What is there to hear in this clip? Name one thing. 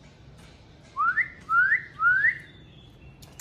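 A small bird whistles short rising chirps close by.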